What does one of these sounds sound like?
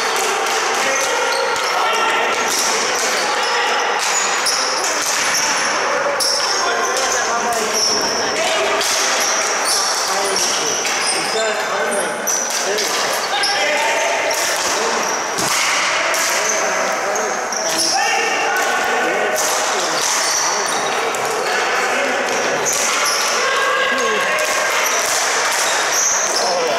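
Plastic sticks clack against a ball and against each other.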